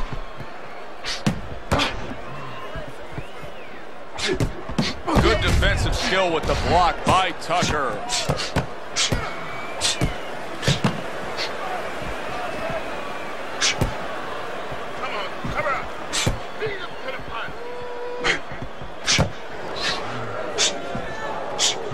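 A crowd murmurs and cheers in the background.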